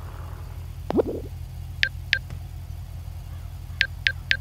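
A phone beeps with short clicks as its menu is used.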